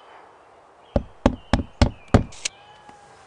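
Hammers knock on wood in a quick burst.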